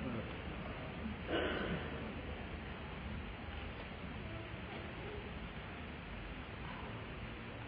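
An audience murmurs softly in a large echoing hall.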